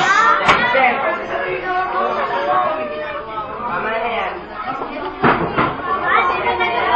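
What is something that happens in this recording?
Young students chatter and shout all around in a noisy room.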